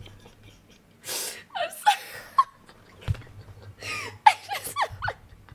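A young woman laughs hard and squeals close to a microphone.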